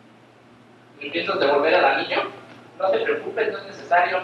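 A man speaks loudly and clearly in an echoing hall.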